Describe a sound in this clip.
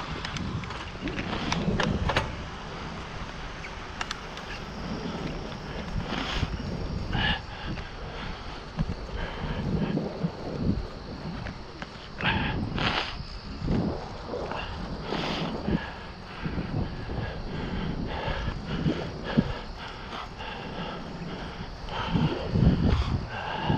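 Bicycle tyres hum steadily on a paved path.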